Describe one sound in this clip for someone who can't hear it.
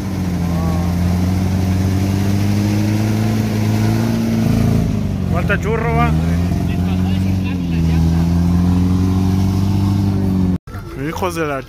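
An off-road vehicle engine revs and rumbles nearby.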